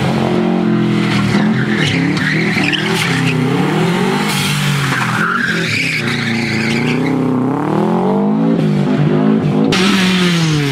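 A rally car engine revs hard and roars past, rising and falling in pitch.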